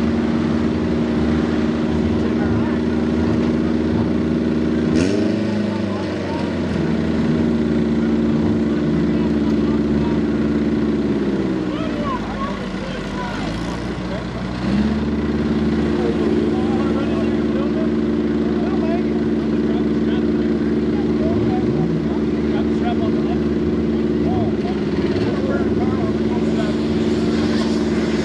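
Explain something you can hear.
A tractor engine idles steadily close by, its pitch dipping now and then.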